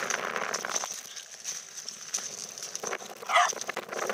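A small dog's paws crunch over shells.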